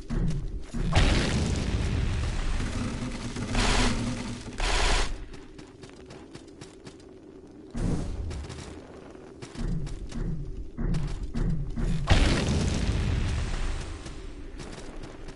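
A magic blast whooshes and crackles.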